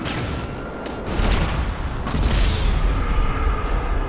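A single gunshot bangs loudly.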